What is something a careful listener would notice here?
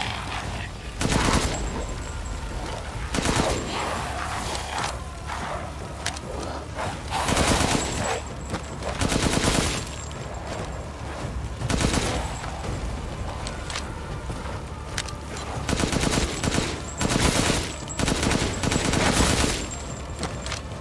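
A rifle fires loud bursts of shots.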